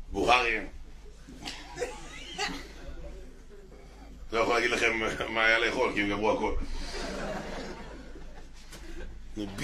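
A man laughs into a microphone.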